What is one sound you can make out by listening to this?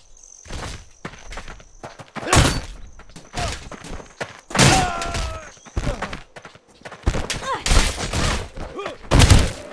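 Heavy weapons swing and strike with loud thuds.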